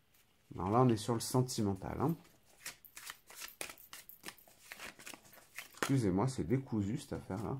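Playing cards shuffle and riffle with quick soft clicks.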